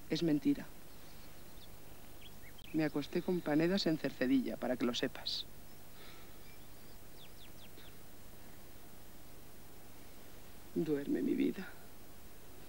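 A young woman speaks softly and tenderly, close by.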